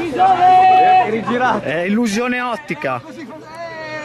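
Young men spectators talk and call out nearby.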